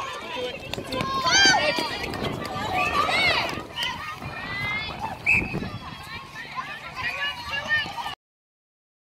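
Young girls shout and call out to each other outdoors.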